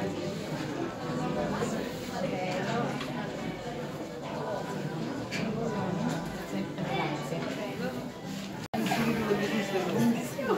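A crowd of men and women chatter and laugh nearby in an echoing room.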